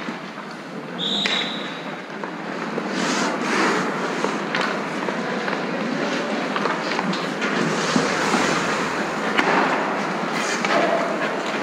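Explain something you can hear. Hockey sticks click and tap against a puck and ice.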